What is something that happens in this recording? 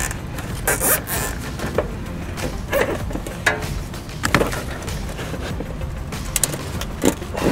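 A metal mesh grille rattles softly as hands handle it.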